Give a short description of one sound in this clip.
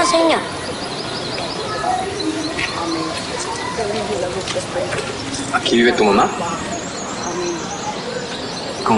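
A young boy answers quietly.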